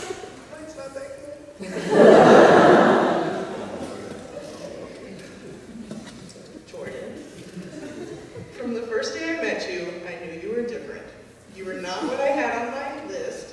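A young woman reads out softly through a microphone.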